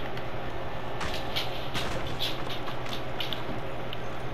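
Wooden boards crack and splinter as they are smashed.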